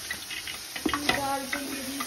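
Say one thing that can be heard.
A wooden spoon scrapes and stirs a thick mixture in a metal pot.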